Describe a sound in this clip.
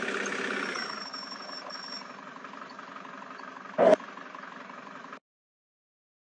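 A van engine idles quietly.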